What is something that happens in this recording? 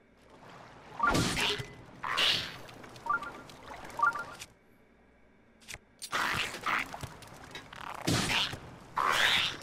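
Game weapons clash and whoosh in a fight.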